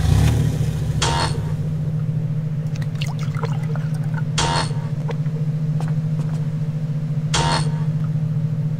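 A short game menu sound plays, like a bag being rummaged, several times.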